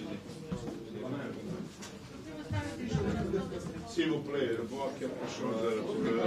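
A middle-aged man laughs.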